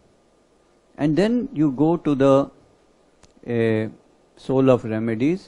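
An older man speaks calmly into a close microphone.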